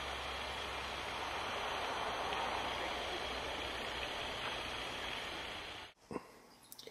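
A deer tears and chews grass close by.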